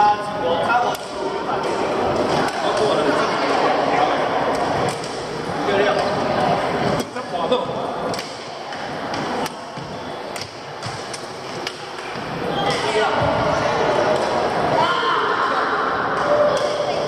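Voices of young men and women chatter and call out, echoing in a large hall.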